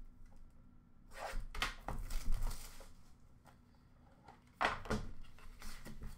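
Hands rummage and rustle through items in a plastic bin.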